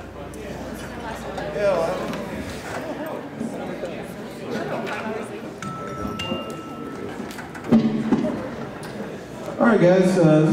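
A man speaks into a microphone over loudspeakers in a large echoing room.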